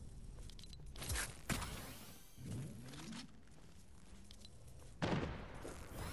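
A video game inventory menu opens and closes with short interface clicks and swishes.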